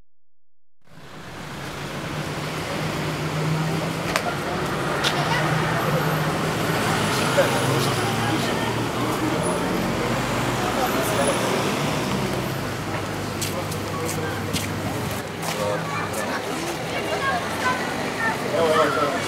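Several men and women talk at once nearby.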